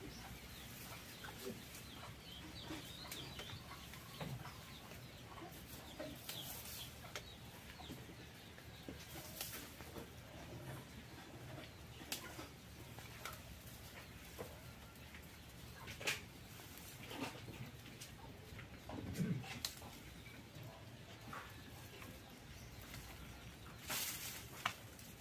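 Leaves rustle and snap as a man pushes through dense plants.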